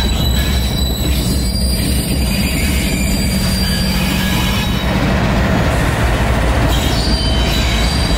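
Diesel locomotive engines rumble loudly and steadily close by.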